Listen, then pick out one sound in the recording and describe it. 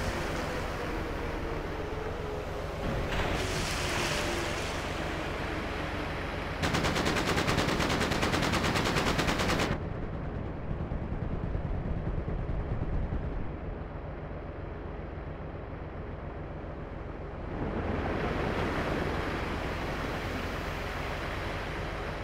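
Water splashes under tractor tyres.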